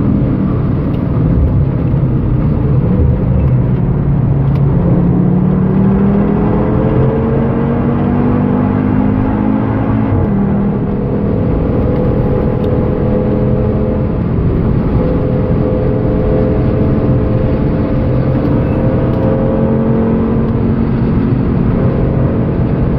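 Wind and tyre noise rush steadily past the car.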